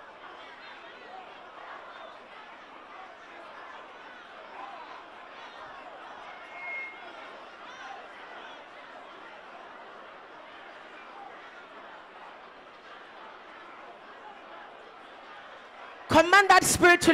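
A crowd of men and women prays aloud together, faint and distant.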